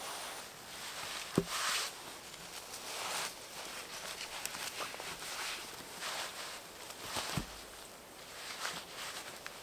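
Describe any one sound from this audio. Heavy logs roll and thud on the ground.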